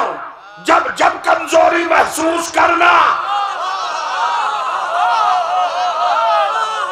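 A man speaks forcefully through a microphone in an echoing hall.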